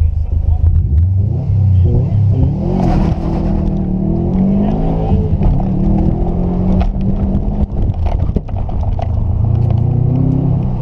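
A car engine revs hard and roars as the car accelerates.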